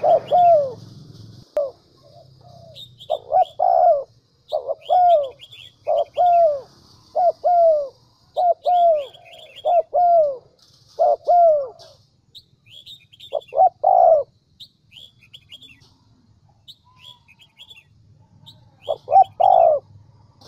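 A dove coos in short repeated phrases close by.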